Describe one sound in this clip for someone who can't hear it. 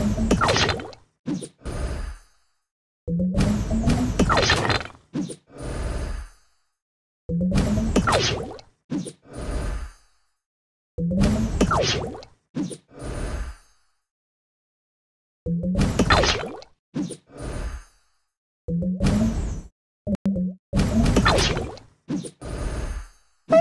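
Cartoon game sound effects whoosh, pop and chime in short bursts with silent gaps between them.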